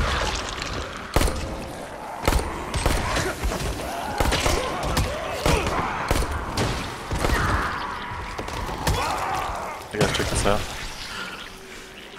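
A heavy blunt weapon strikes bodies with wet, crunching thuds.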